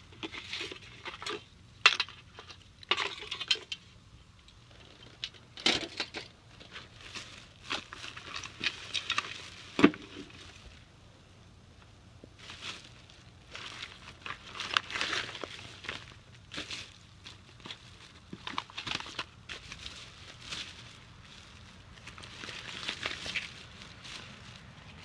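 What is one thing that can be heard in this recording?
Plastic bags rustle and crinkle as hands rummage through them.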